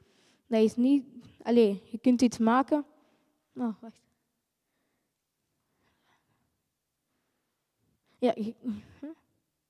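A young boy speaks with animation through a microphone.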